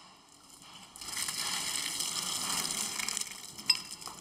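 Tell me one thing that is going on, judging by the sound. A hand scrapes and crumbles loose concrete.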